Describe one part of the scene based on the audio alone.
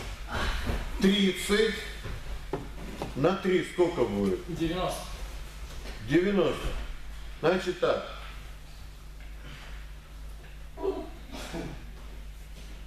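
A man speaks loudly and firmly in an echoing hall.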